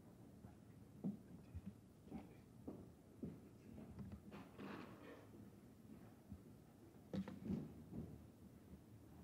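A metal chair knocks and scrapes on a wooden floor.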